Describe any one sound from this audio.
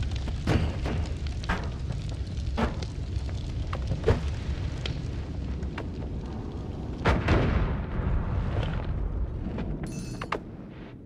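Crackling fire rumbles steadily.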